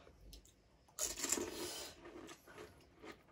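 Crisp hollow snacks crunch as they are bitten.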